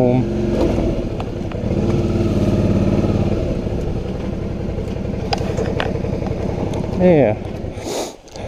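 A motorcycle engine idles close by with a throbbing rumble, then winds down and stops.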